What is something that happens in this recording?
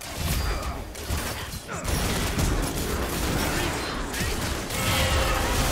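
Fantasy spell effects whoosh and crackle in a busy fight.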